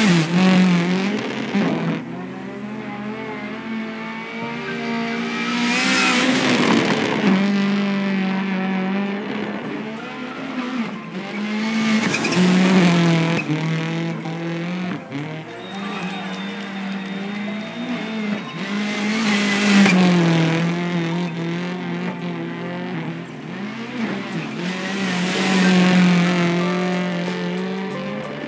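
A rally car engine roars and revs as the car speeds past.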